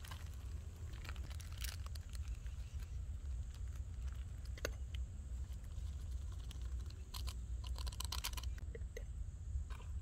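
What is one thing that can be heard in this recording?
A metal lid clinks against a pot.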